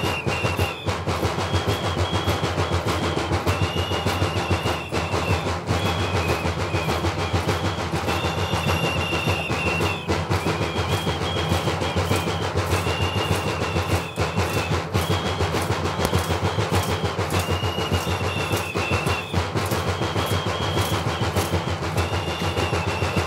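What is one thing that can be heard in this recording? Large drums beat in a fast, steady rhythm close by.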